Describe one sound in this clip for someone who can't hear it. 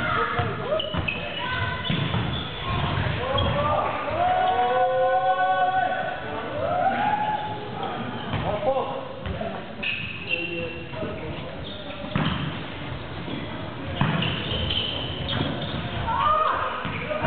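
A volleyball thumps against hands in an echoing hall.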